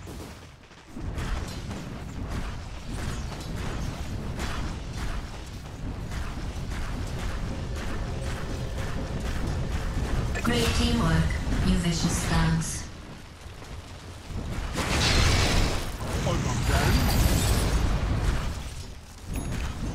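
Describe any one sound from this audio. Game weapons clash and spells crackle in a hectic battle.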